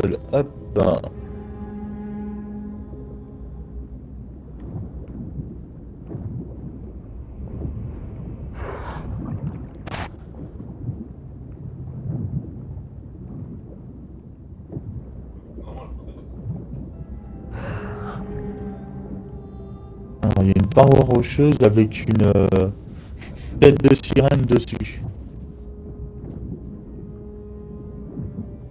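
Muffled underwater rumbling and bubbling goes on steadily.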